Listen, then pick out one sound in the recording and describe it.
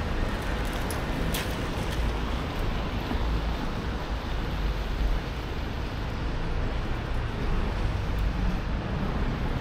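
Light rain patters steadily on a wet street outdoors.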